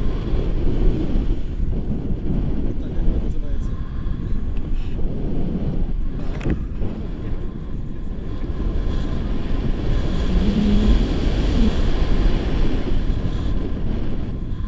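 Wind rushes and buffets loudly across a microphone outdoors.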